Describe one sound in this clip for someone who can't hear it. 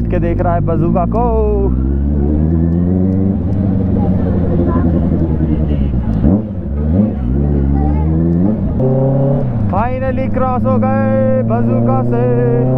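A motorcycle engine hums and revs as it rides along.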